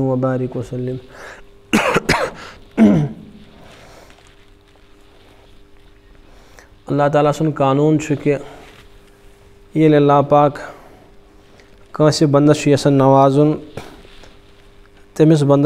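A man recites in a slow, drawn-out chant, close to a microphone.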